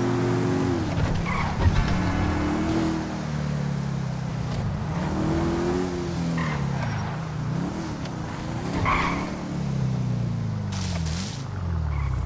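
Tyres screech on pavement.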